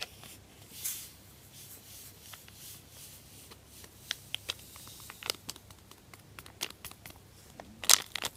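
Powder pours softly from a packet into a plastic tray.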